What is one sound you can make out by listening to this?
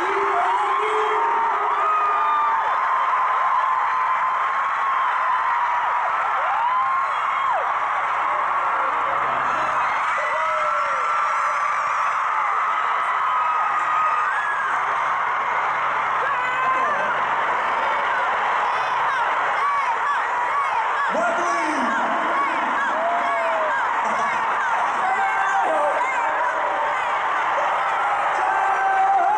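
A large crowd screams and cheers loudly in a big arena.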